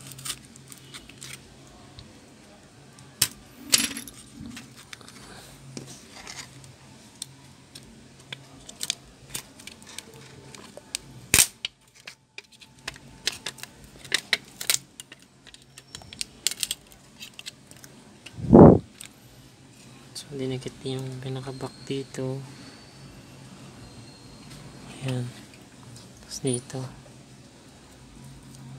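Small plastic parts click and tap as hands handle them.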